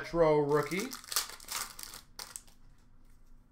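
Cellophane wrapping crinkles and tears as a pack of cards is opened by hand.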